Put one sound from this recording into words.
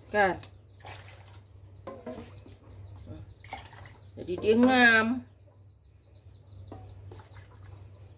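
A small plastic scoop clinks against a metal bowl.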